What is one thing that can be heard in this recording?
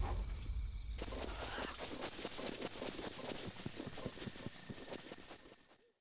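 Quick footsteps rustle through grass.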